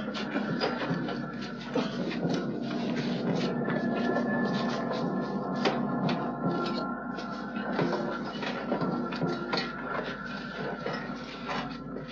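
Swords clash and clank repeatedly.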